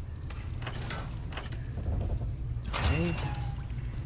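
A metal gate creaks.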